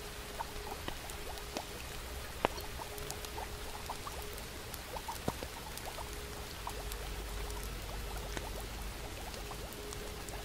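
A fire crackles and pops in a fireplace.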